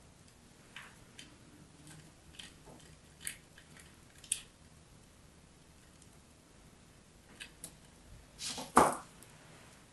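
Fingernails tap and click on a small metal grater.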